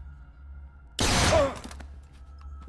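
A gunshot rings out loudly.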